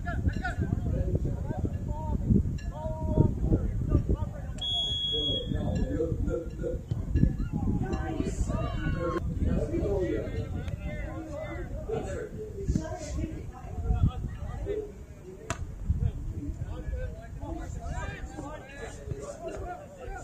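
Crowd voices chatter and shout outdoors at a distance.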